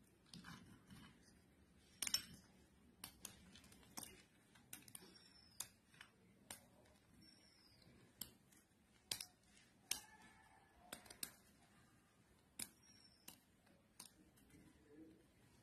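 A knife taps and clicks sharply as it cuts through cashew nuts in a bowl.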